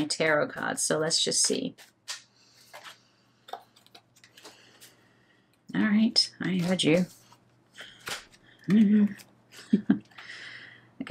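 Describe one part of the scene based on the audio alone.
Playing cards shuffle and riffle softly.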